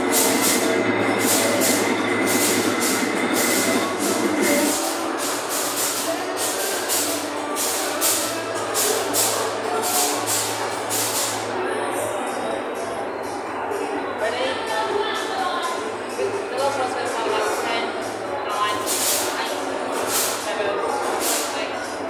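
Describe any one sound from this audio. A steam engine chuffs in quick, even puffs of steam close by.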